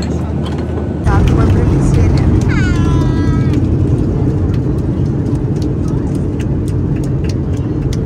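Jet engines roar loudly as a plane speeds along a runway.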